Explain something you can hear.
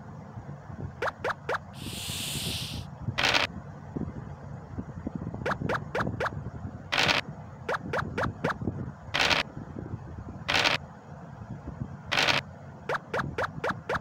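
Game pieces click with quick, short taps as they hop along.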